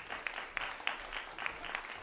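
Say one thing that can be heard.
High heels click on a wooden stage floor.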